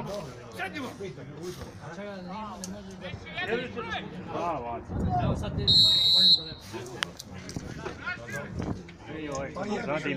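Men talk and shout with animation close by, outdoors.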